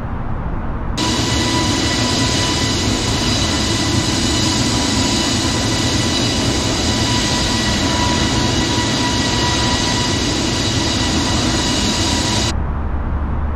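Jet engines roar with a loud, steady high whine, as if heard from outside the airliner.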